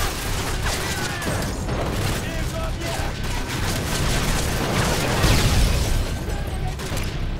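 Rapid gunfire rattles and echoes in a large hall.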